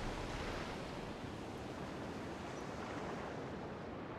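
Sea water washes and laps steadily.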